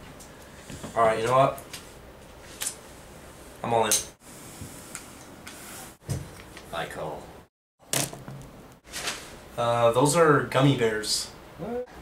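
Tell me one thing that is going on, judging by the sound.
A young man speaks casually up close.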